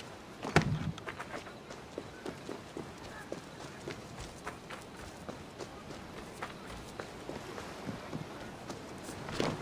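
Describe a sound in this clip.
Footsteps run quickly over dirt and wooden planks.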